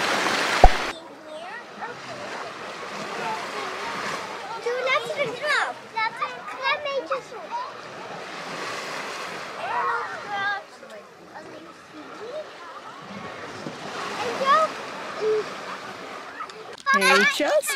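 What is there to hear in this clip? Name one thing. Young children talk and shout excitedly nearby.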